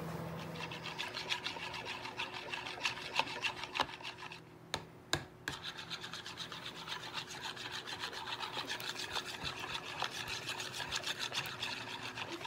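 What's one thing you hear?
A wire whisk clatters rapidly against a bowl.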